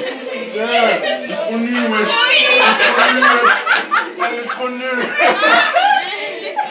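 Young women cheer and sing loudly and joyfully close by.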